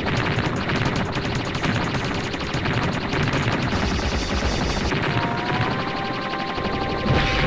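Rapid arcade gunfire rattles without pause.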